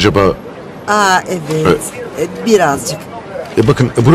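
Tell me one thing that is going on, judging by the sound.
A young woman answers briefly, close by.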